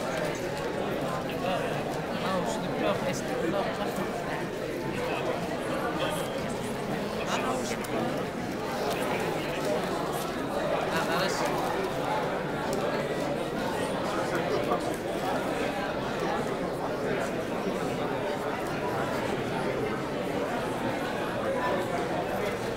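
A crowd of men and women chatter throughout a room with some echo.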